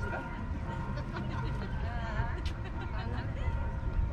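A young child talks nearby.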